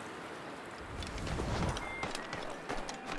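Footsteps crunch quickly through snow.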